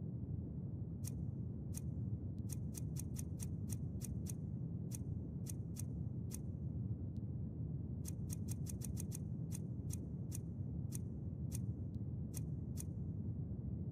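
Menu clicks tick softly, one after another.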